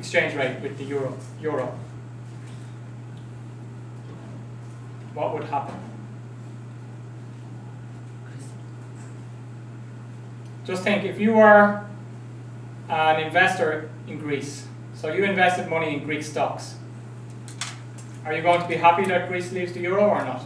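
A young man lectures calmly through a microphone, pausing between phrases.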